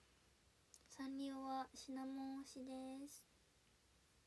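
A young woman sings a short phrase in three held notes, close up.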